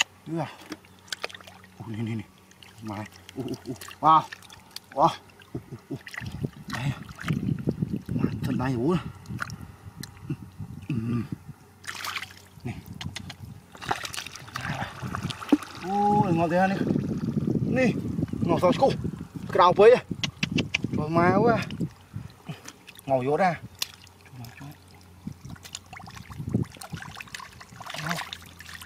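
Hands squelch and splash in shallow muddy water.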